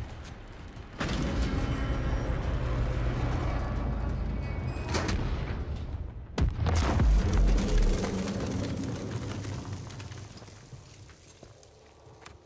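A deep, heavy rumble roars and slowly fades.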